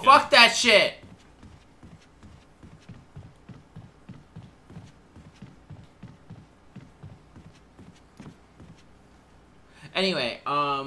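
Footsteps thud steadily on wooden stairs.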